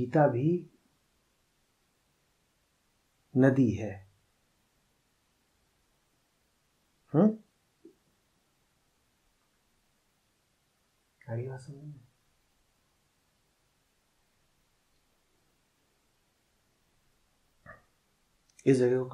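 A man speaks calmly and slowly into a close microphone, in short phrases with long pauses.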